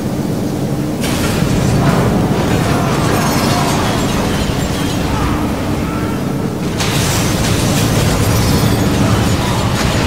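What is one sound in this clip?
Blades clash and magic blasts burst in a fight.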